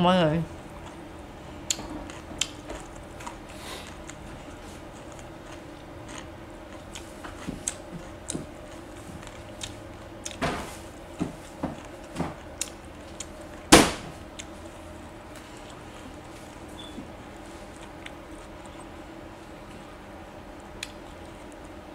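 Fresh leaves crinkle and rustle as hands wrap food.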